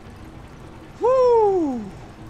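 A young man lets out a long, falling exclamation.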